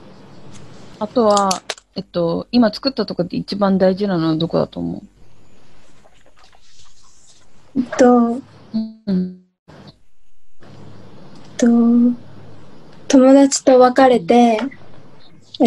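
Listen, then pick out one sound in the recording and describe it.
A young woman speaks with animation through an online call.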